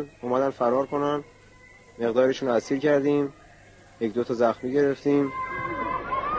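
A young man speaks weakly into a microphone, close up, in short bursts.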